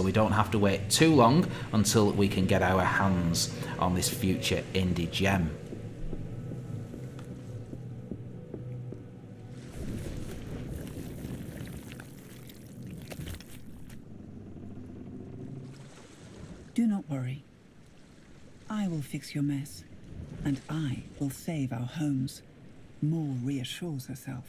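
Water laps and washes against wooden posts.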